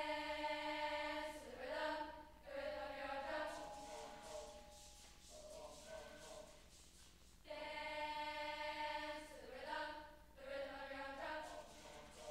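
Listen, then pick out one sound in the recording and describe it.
A large youth choir sings together in an echoing hall.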